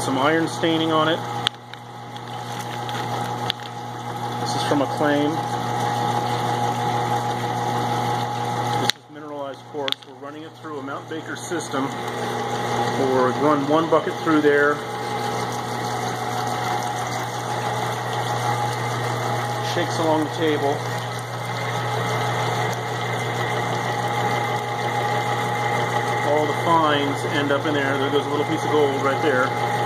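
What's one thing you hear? A large machine hums steadily nearby.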